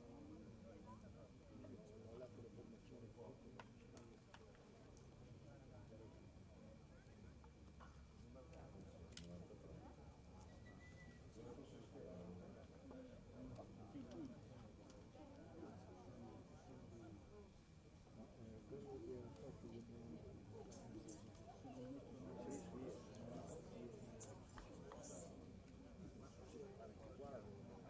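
A crowd of spectators chatters in the distance outdoors.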